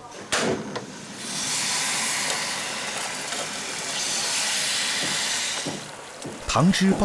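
Water pours into a hot pan and sizzles steadily.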